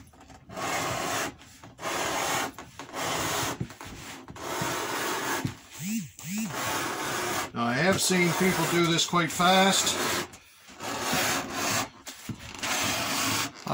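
A blade scrapes along a hard surface in repeated strokes.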